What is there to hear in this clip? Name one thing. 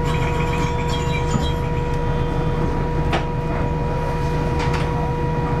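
A train rumbles and clatters slowly along the tracks, heard from inside a carriage.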